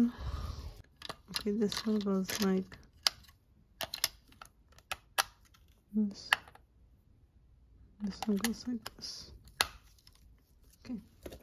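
Batteries click into a small plastic device.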